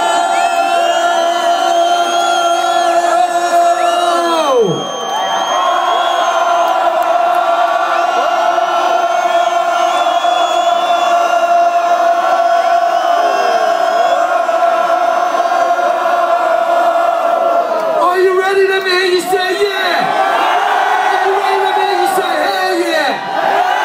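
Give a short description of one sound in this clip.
A live band plays loudly over loudspeakers.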